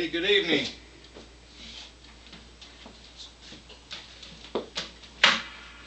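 Knocks and thumps sound as a man handles instruments.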